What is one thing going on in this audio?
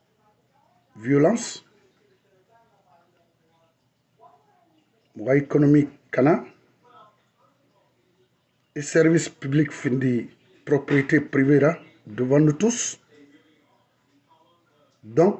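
A middle-aged man speaks calmly and closely into a phone microphone, in short bursts with pauses.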